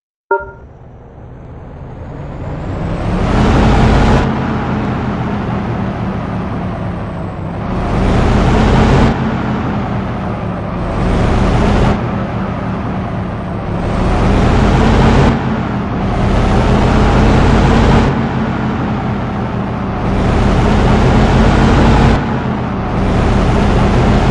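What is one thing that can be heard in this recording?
A bus engine hums steadily and revs up and down in repeated surges.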